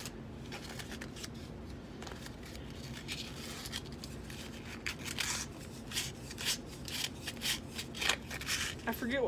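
Small objects click and rustle in a boy's hands.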